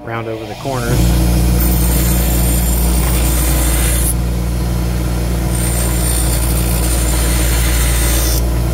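A metal pipe grinds against a spinning wheel with a harsh, steady hiss.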